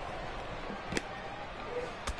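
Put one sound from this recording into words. A punch lands with a dull thud.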